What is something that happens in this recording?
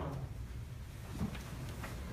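Chairs creak and shift as people sit down.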